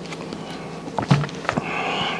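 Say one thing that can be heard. A man handles food with crinkling, clacking sounds up close.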